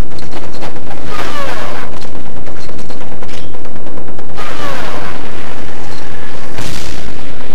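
A sword slashes through the air with a sharp swish.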